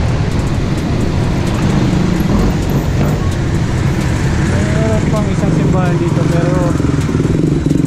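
Wind rushes steadily past while cycling along a street.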